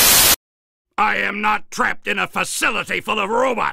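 A man speaks forcefully in a deep voice.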